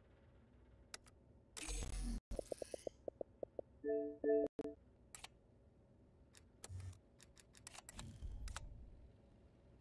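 Short electronic clicks and beeps sound in quick succession.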